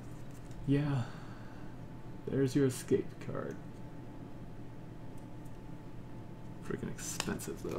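Playing cards rustle and slide as a hand picks them up and puts them down.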